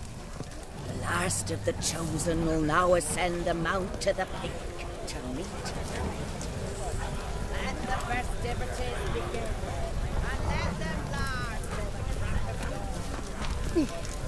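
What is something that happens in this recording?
A crowd of men and women chatter and murmur nearby.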